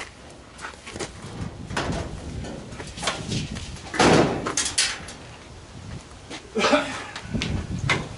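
A metal appliance bumps and scrapes as it is moved.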